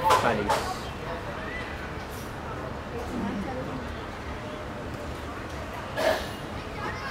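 Spectators chatter close by.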